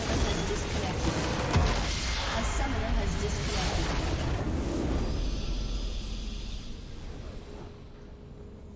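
A huge magical explosion booms and crackles, then slowly fades.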